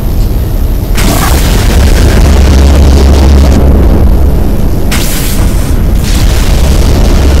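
Energy blasts roar and crackle with loud explosions.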